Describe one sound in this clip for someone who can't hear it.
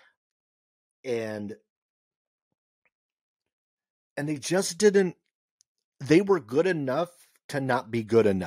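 A young man speaks calmly and closely into a microphone, in short bursts.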